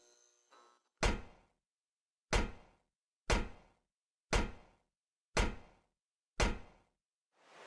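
Footsteps clank one by one on metal stairs.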